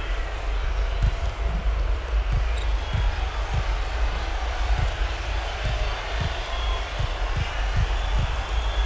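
A basketball bounces on a hardwood floor in a steady rhythm.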